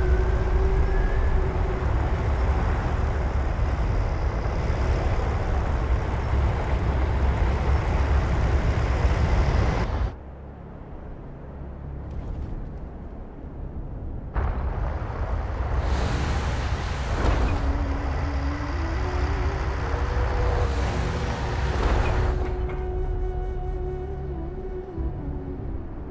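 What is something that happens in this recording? A heavy vehicle's engine rumbles low and steady.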